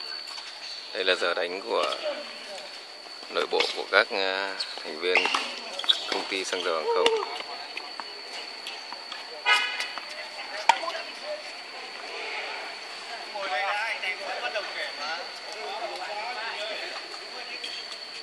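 Men talk and call out nearby outdoors.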